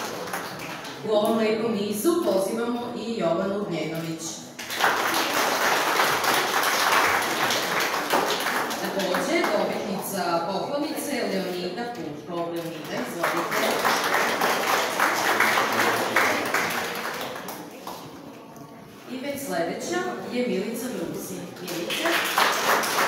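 A woman reads out names through a microphone in an echoing hall.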